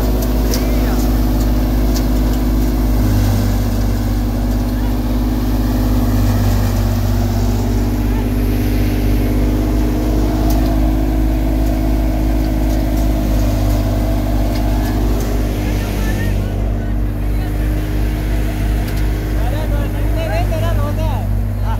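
Chaff and grain rush and hiss out of a threshing machine.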